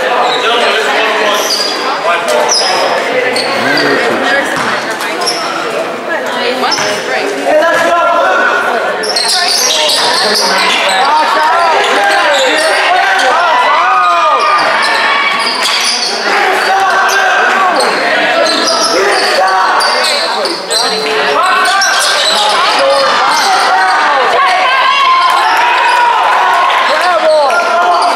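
A crowd of spectators cheers and shouts in a large echoing gym.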